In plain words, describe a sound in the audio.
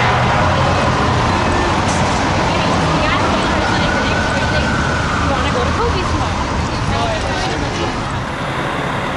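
City traffic rumbles steadily.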